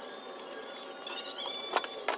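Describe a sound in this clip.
A knife scrapes and cuts at wet meat.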